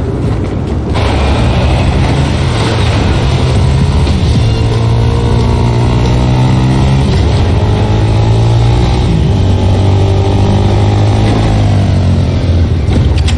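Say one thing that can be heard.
A small vehicle's engine hums and revs as the vehicle drives.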